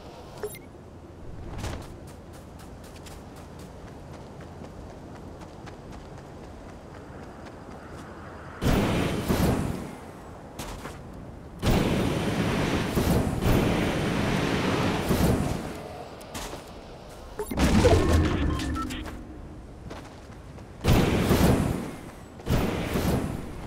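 Footsteps patter quickly over sand and wooden boards.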